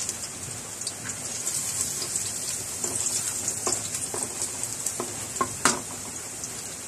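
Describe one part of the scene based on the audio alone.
A wooden spatula scrapes and knocks against a metal wok.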